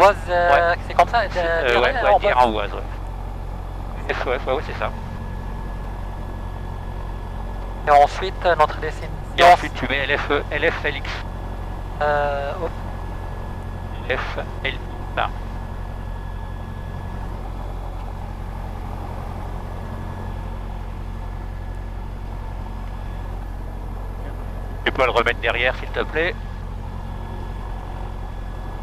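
A steady low engine hum drones throughout.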